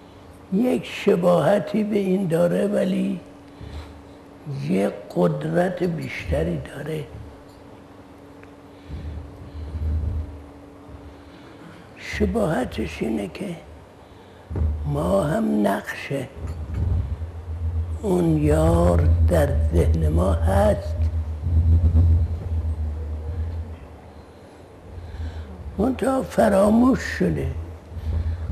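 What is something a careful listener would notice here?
An elderly man speaks slowly and calmly into a close microphone, pausing often.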